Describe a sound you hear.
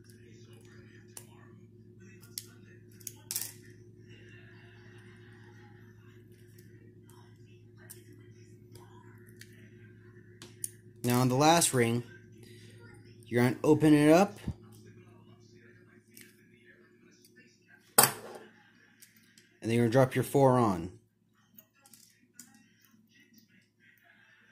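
Metal pliers click and scrape against small metal rings.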